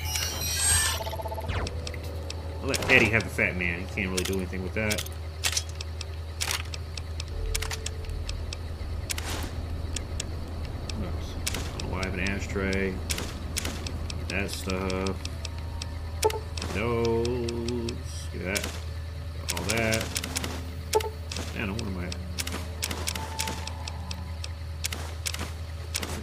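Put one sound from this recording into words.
Menu clicks tick quickly.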